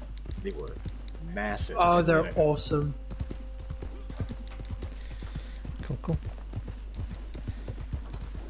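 Horse hooves clop steadily on dirt.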